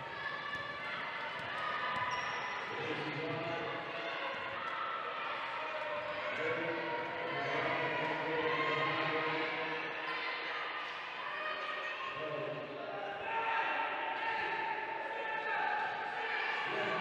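Wheelchair wheels roll and squeak on a hard indoor court.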